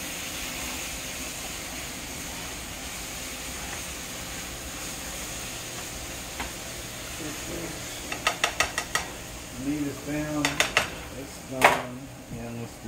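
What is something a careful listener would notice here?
A metal spatula scrapes and taps against a frying pan.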